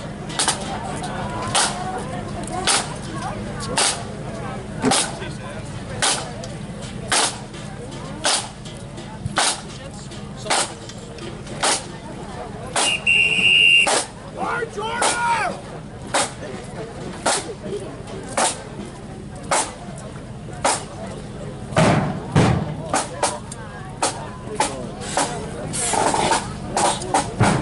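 A marching band's drums beat a steady, even march rhythm close by.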